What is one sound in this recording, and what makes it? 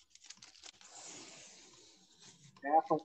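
Paper rustles as a painting is handled.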